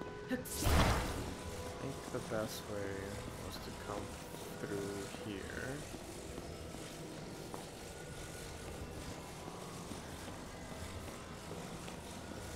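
A soft magical hum drones steadily.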